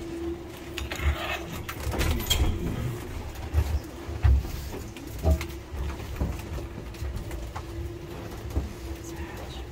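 Footsteps shuffle and thud.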